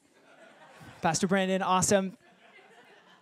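A young man speaks loudly through a microphone.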